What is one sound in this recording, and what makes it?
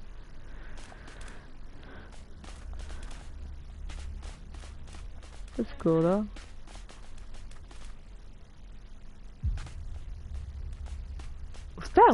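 Quick footsteps patter on dry ground.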